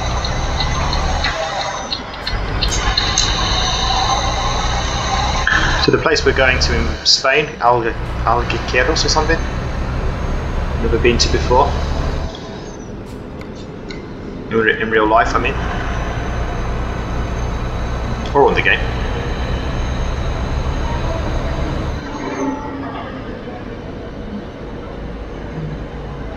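A truck engine hums low and steady as it drives along a road.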